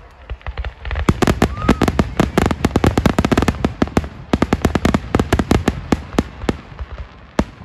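Fireworks crackle and sputter as they burn in the sky.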